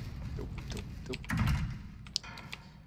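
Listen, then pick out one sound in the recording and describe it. A locked door handle rattles.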